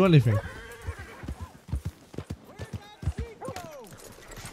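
A horse's hooves thud at a trot on soft ground.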